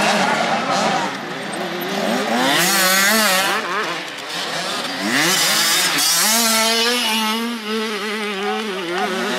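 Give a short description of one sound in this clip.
A single dirt bike engine revs up and down as it rounds a corner.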